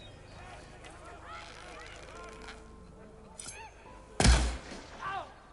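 A bowstring is drawn and an arrow is loosed with a sharp twang.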